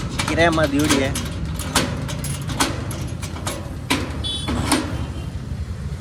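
A metal tool scrapes and taps against a corrugated metal sheet.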